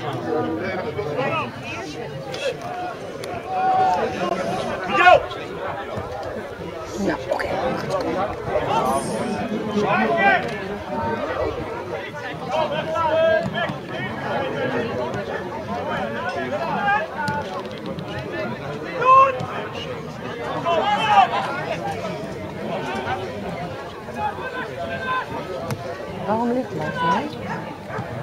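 Spectators chatter and call out from the sideline.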